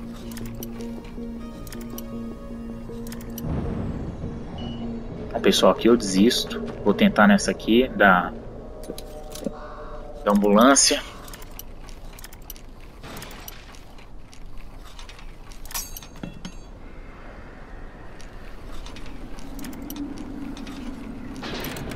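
A metal pick scrapes and clicks inside a lock.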